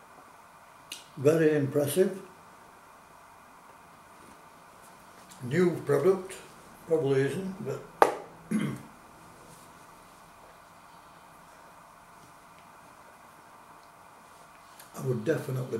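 An elderly man talks calmly, close by, addressing the listener.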